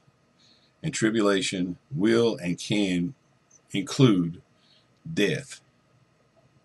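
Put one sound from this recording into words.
A middle-aged man talks calmly and close to a microphone.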